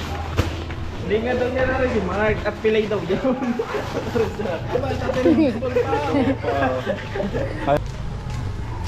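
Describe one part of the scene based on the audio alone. Men talk nearby with animation.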